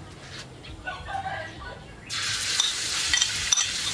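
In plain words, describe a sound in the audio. Food slides off a plate into a wok.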